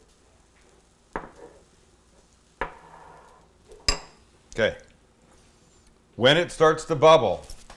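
Batter sizzles on a hot griddle.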